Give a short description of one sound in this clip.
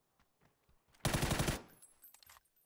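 A rapid burst of gunfire rings out.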